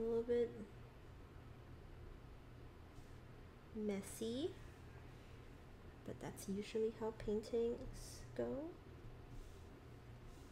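A paintbrush brushes softly on paper.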